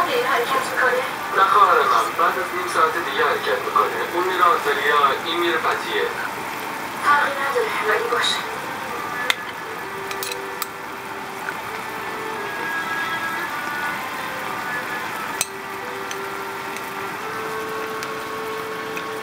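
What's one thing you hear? Sausages sizzle in hot oil.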